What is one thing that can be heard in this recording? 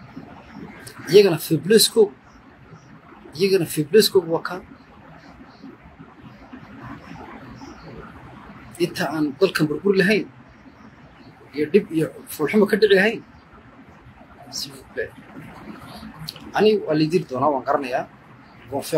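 A man speaks close to the microphone in short, forceful bursts with pauses between them.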